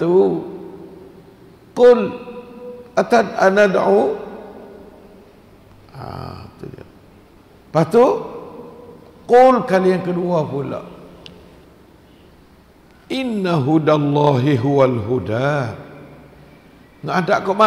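An elderly man recites in a slow, melodic chant into a close microphone, with long pauses between phrases.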